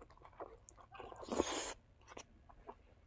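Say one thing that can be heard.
A young man slurps food with a sucking sound.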